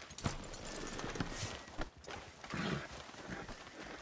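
A horse snorts and shuffles.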